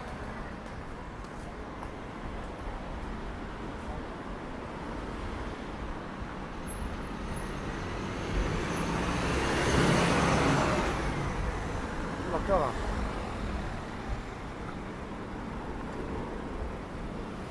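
A steady hum of city traffic fills the outdoor air.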